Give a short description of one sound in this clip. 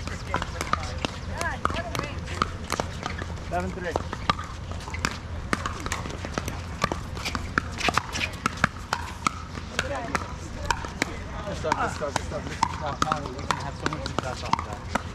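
Paddles pop sharply against plastic balls, over and over.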